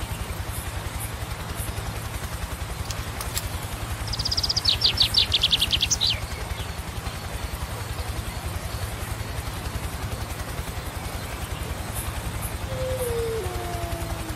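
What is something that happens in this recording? Footsteps thud steadily on grass.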